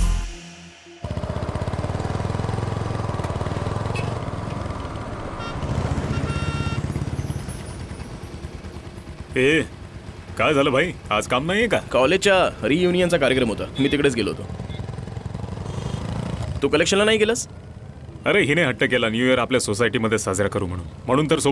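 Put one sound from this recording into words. Motorcycle engines hum steadily.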